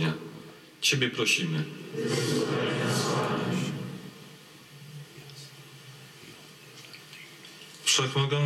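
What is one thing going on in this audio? Men pray aloud together, echoing in a large hall.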